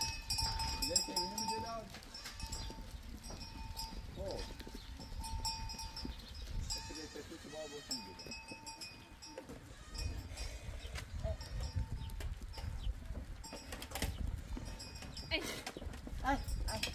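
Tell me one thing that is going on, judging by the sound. Goats bleat nearby.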